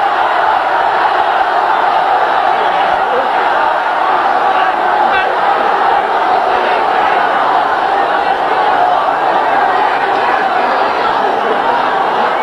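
A large crowd cheers and shouts loudly in a big echoing space.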